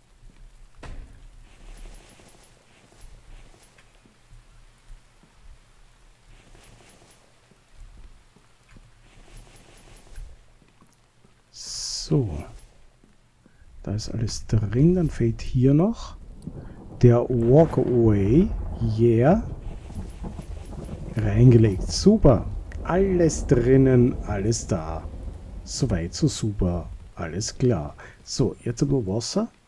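Rain patters softly outdoors.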